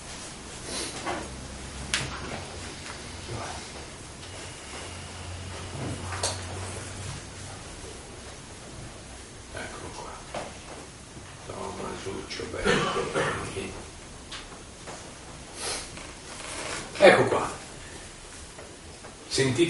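A middle-aged man reads aloud calmly.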